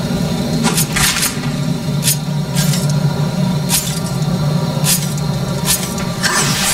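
Heavy armoured footsteps clank on a stone floor.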